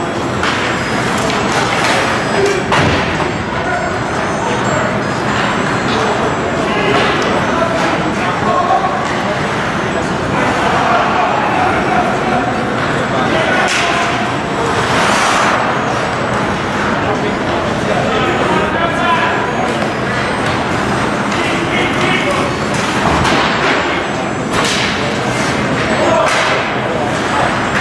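Skates scrape and swish across ice in a large echoing arena.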